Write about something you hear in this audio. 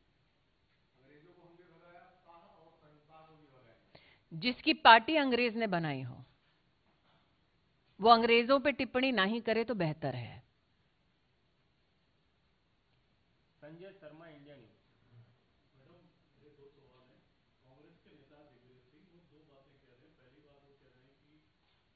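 A woman speaks into a microphone in a steady, firm voice, with pauses.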